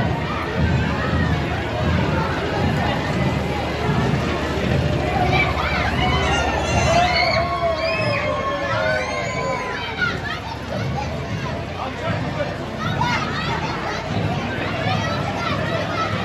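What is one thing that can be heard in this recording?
A crowd of children and adults cheers and chatters in a large echoing hall.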